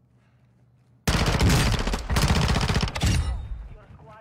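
Rapid automatic gunfire bursts loudly.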